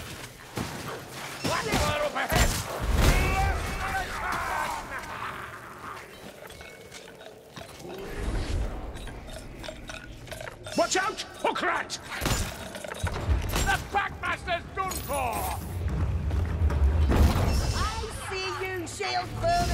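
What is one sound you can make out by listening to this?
Heavy hammers thud against creatures.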